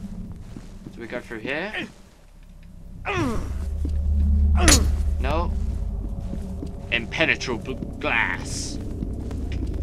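A young man shouts and yelps in fright close to a microphone.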